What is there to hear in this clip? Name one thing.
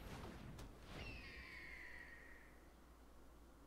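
A game sound effect whooshes and chimes.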